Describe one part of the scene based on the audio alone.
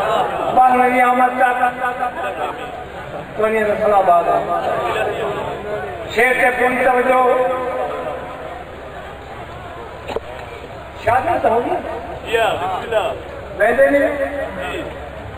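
A man chants loudly in long, wavering phrases through a microphone and loudspeaker.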